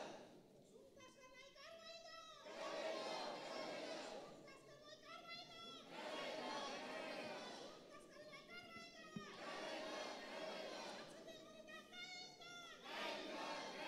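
A large crowd of men chants slogans loudly in unison, in repeated bursts.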